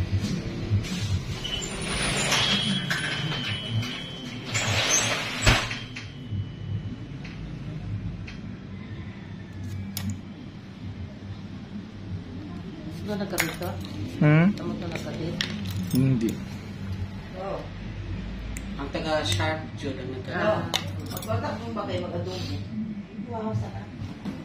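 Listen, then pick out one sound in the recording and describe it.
Small nail clippers snip toenails with sharp clicks.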